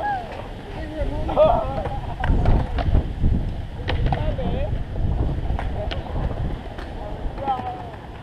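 Young men talk in the distance outdoors.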